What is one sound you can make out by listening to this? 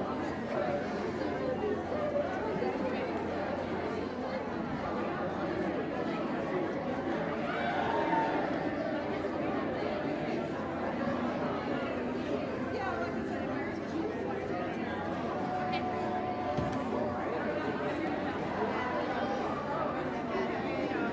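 A crowd of men and women chatters throughout a large room.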